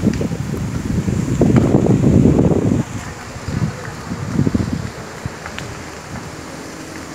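A wildfire roars and crackles close by.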